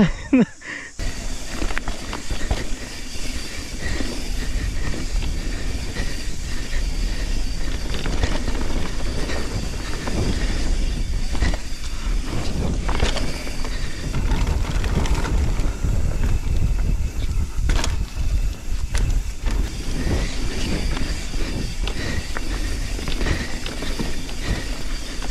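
Wind rumbles past at speed.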